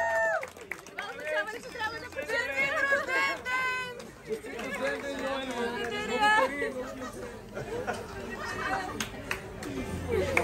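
A young man talks cheerfully close by.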